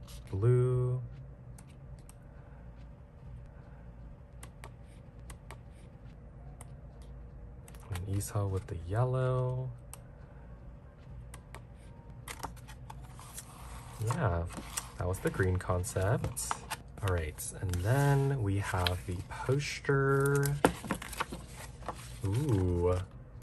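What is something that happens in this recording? Paper pages rustle as they are turned one by one.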